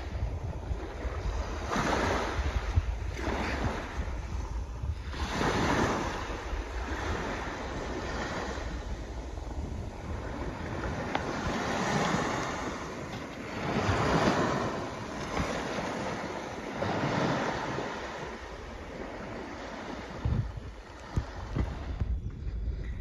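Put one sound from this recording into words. Small waves wash and hiss against the shore.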